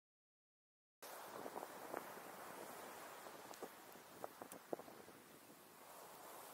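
Wind blows steadily across a microphone outdoors.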